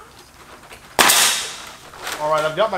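A pneumatic nailer fires with a sharp bang and hiss.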